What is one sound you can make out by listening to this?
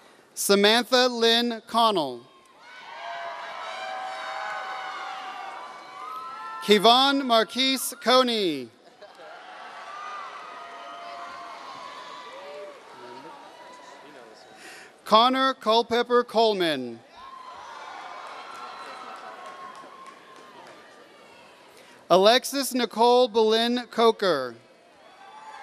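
A man reads out names through a microphone and loudspeaker in a large echoing hall.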